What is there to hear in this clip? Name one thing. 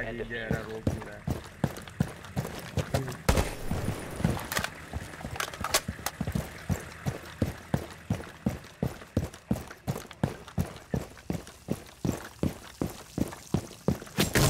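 Quick footsteps thud steadily on hard ground.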